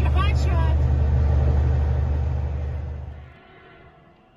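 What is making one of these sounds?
A truck engine rumbles loudly from inside the cab.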